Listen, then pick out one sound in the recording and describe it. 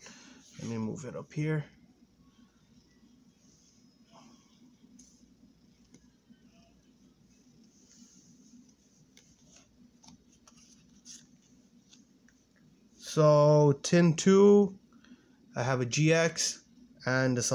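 Playing cards slide and tap softly on a cloth surface.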